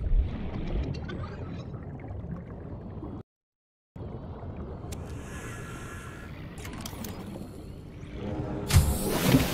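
Water rumbles and swirls in a low, muffled underwater hush.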